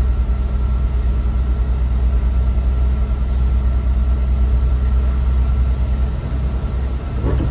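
Tyres hiss on a wet road.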